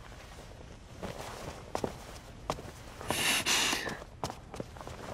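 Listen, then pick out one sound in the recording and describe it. Footsteps tread slowly indoors.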